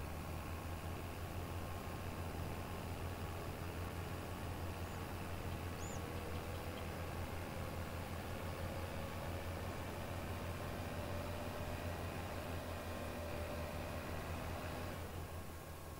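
Grain rustles as a harvester cuts through the crop.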